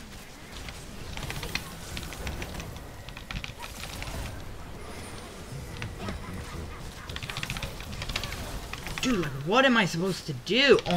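Game spell effects whoosh, zap and clash in quick bursts.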